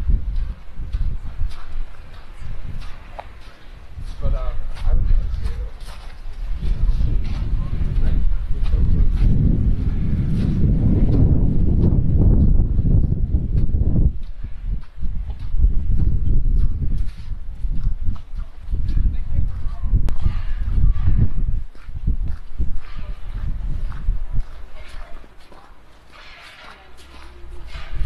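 Footsteps crunch on packed snow, close by.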